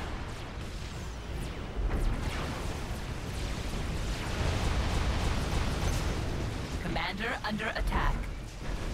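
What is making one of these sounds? Deep explosions rumble during a battle.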